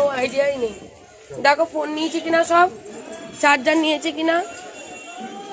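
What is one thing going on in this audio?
A woman sings close by in a high, wavering voice.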